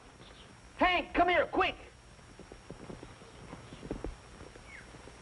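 Horse hooves thud and clop on the ground.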